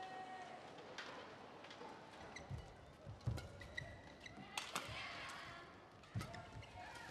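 A shuttlecock is struck back and forth with rackets.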